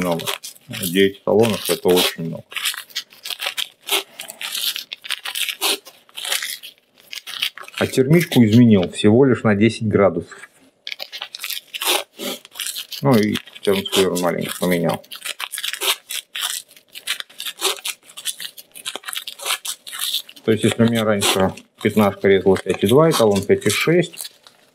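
Masking tape rips and crackles as it is pulled off a roll.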